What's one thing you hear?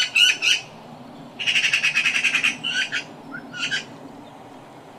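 A magpie chatters in harsh, rattling bursts close by.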